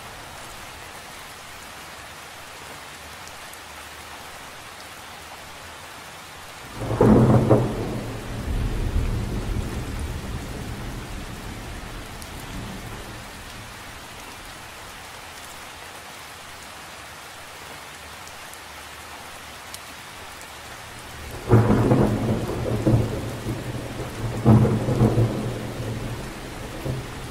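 Rain patters steadily on the surface of a lake outdoors.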